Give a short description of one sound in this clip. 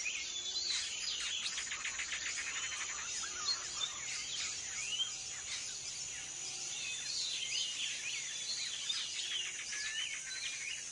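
Birds chirp and whistle all around.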